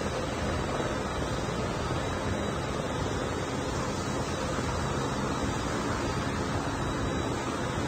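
An aircraft's engines drone steadily.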